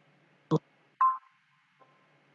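A computer notification chime sounds once.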